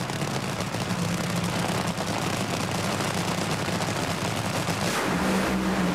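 Dragster engines rumble and crackle loudly while idling.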